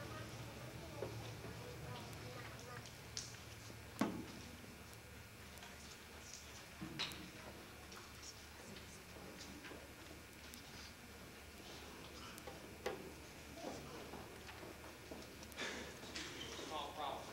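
People in an audience murmur quietly in a large echoing hall.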